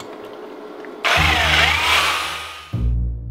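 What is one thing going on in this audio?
A power drill whirs loudly, mixing in a bucket.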